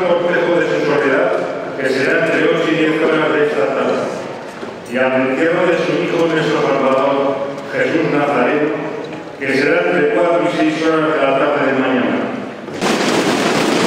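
An elderly man reads out solemnly and loudly, heard close.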